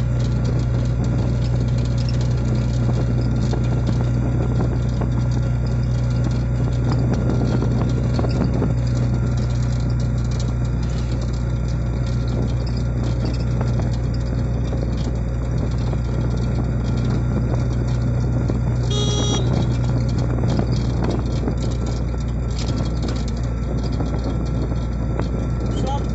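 Wind rushes past the open vehicle.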